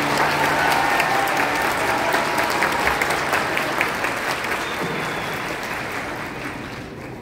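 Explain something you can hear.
An audience claps and cheers in a large hall, slowly dying down.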